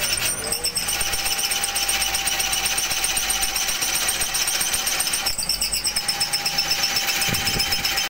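A drill bit grinds into wood.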